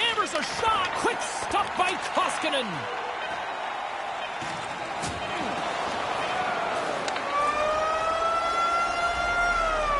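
A large crowd cheers and murmurs in an echoing arena.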